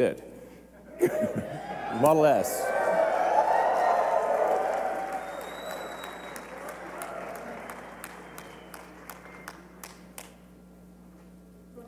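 A large crowd cheers and applauds, then slowly fades.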